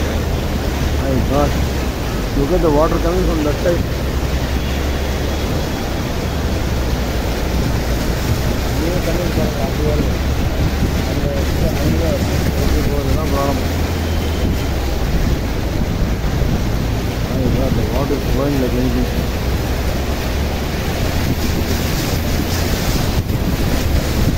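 Floodwater rushes and churns steadily.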